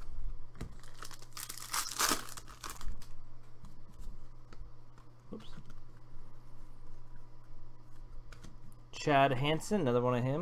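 Trading cards rustle and click as they are shuffled by hand.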